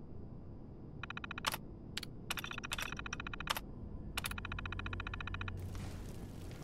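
A computer terminal chirps and clicks rapidly as text prints.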